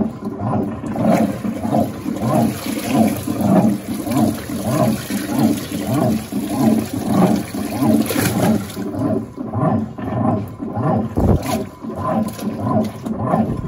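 A hand splashes through water, stirring clothes.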